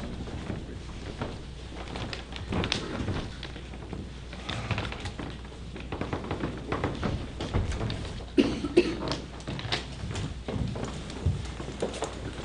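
Several adults talk quietly nearby.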